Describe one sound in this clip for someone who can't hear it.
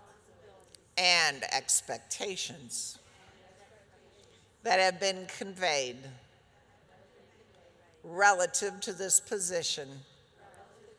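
An older woman speaks calmly into a microphone, with pauses between phrases.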